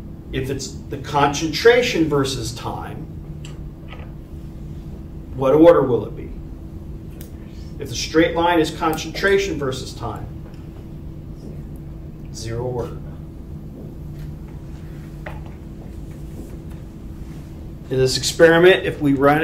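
A man speaks calmly in a room, with pauses between phrases.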